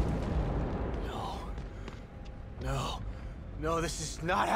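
A man speaks in a shaken, distressed voice.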